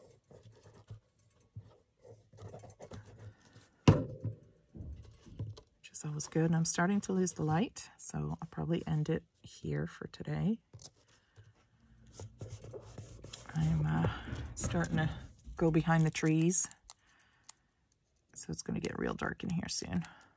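Paper rustles and slides softly as a card is handled.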